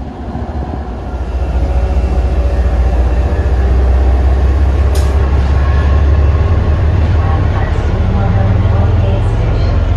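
A locomotive engine roars loudly as a train approaches.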